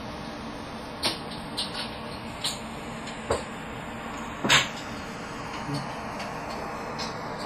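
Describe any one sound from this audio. Mahjong tiles click and clack on a table.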